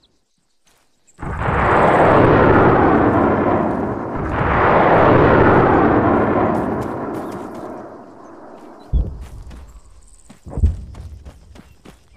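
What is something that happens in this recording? Boots crunch on gravel as a soldier runs.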